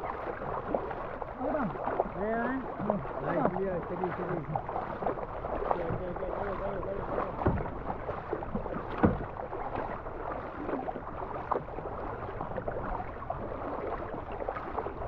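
A paddle splashes rhythmically through the water.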